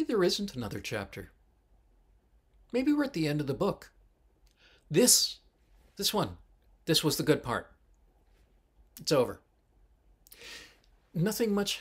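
A middle-aged man speaks with animation, close to a microphone, in short bursts with pauses.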